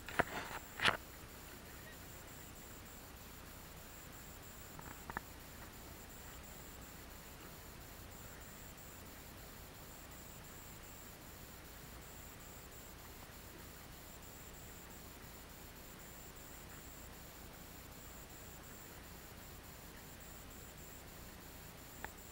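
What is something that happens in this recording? Water splashes and laps against a boat hull.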